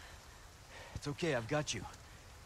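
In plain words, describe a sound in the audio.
A young man speaks briefly and tensely.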